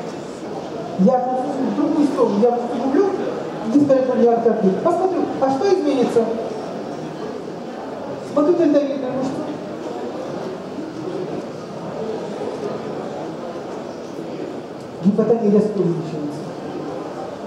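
A woman speaks with animation into a microphone, heard through a loudspeaker in an echoing room.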